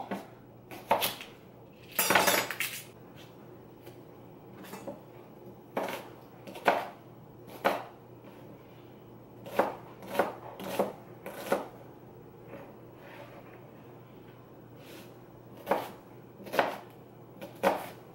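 A knife chops on a wooden cutting board.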